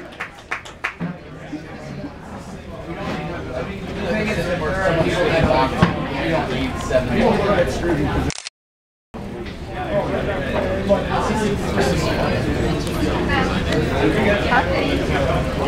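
People chatter nearby in a noisy room.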